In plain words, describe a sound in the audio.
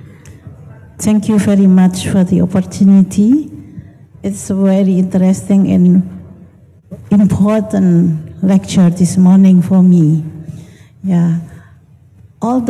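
A woman speaks calmly through a microphone.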